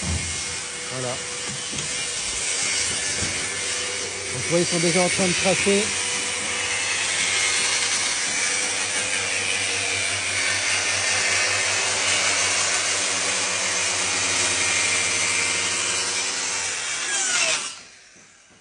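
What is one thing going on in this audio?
A circular saw whines loudly as it cuts through wood.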